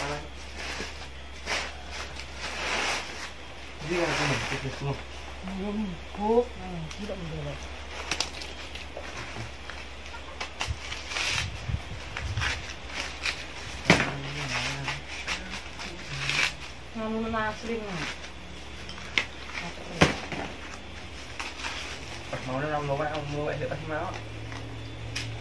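Dry corn husks rustle and crackle as they are handled.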